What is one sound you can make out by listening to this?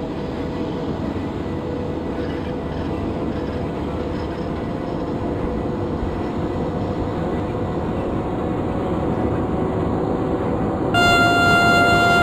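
A train rumbles steadily along the rails, growing slowly louder.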